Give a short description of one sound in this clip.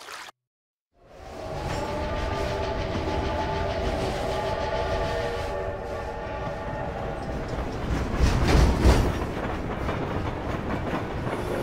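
A train rumbles loudly as it approaches through a tunnel.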